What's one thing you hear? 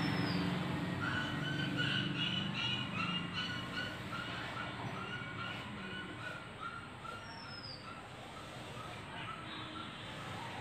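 A marker squeaks as it draws lines on a whiteboard.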